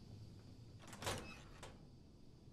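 A heavy metal door bangs open.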